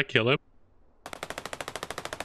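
A heavy machine gun fires a rapid burst.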